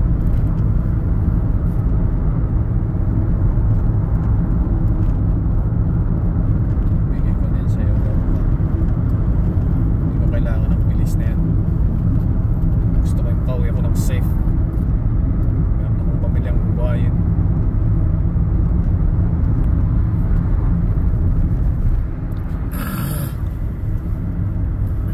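A car engine hums steadily with road rumble, heard from inside the car.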